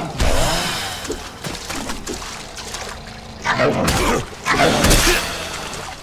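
Water splashes as someone wades through a stream.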